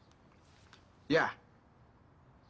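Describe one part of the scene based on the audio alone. A young man speaks on a phone.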